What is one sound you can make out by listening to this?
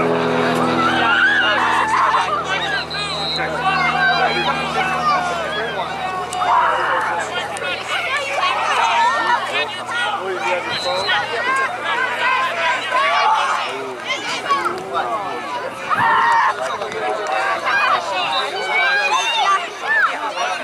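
Children shout and call out to each other outdoors.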